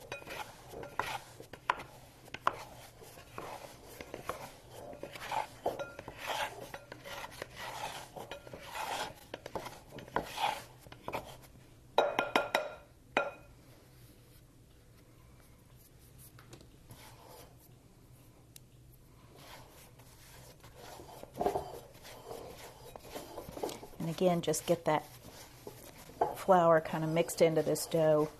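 Dough thumps and squishes softly against a glass bowl.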